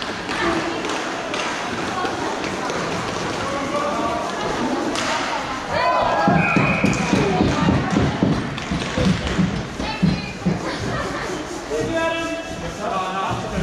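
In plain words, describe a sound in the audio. Sticks clack against a ball.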